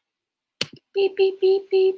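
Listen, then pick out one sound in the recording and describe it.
A countdown timer alarm beeps.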